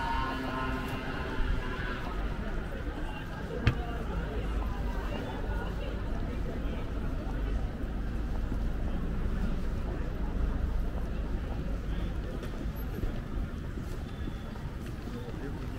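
City street noise hums steadily outdoors.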